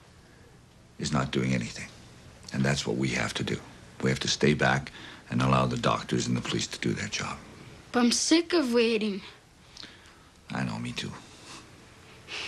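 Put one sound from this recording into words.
A man speaks quietly and earnestly, close by.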